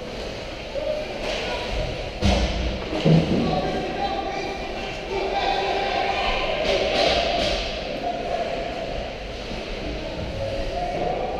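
Ice skates scrape and hiss across ice in a large echoing rink.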